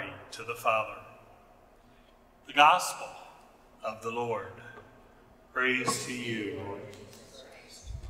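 A middle-aged man speaks slowly and solemnly into a microphone in a large echoing hall.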